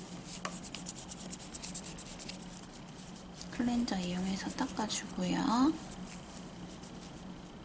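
A tissue rubs and rustles softly against a fingernail.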